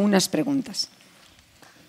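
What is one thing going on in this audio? A woman speaks briefly through a microphone in a large hall.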